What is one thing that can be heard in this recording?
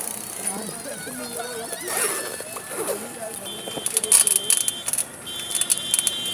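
A bicycle rolls past on a paved road.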